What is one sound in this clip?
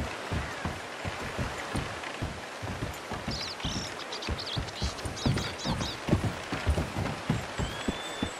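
A horse's hooves clop steadily on wooden planks.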